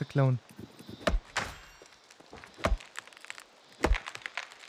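An axe chops into a tree trunk with dull thuds.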